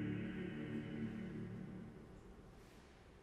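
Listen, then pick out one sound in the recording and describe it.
Men sing together in a sustained choral chord, echoing in a large hall.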